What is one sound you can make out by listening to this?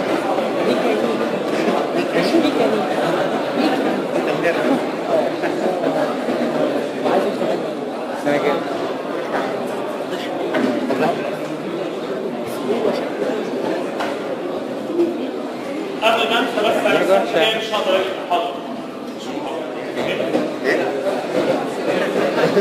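A middle-aged man lectures calmly.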